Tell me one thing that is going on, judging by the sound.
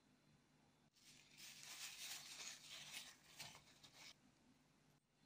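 A paper towel rustles as an egg is wiped.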